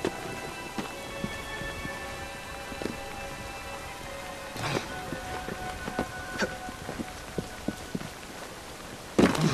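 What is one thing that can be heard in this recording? Footsteps patter quickly across a tiled roof.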